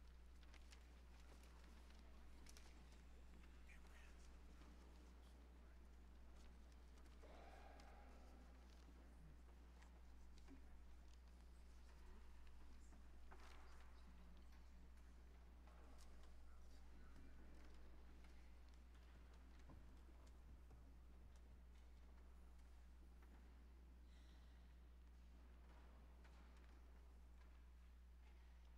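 A crowd murmurs and shuffles quietly in a large echoing hall.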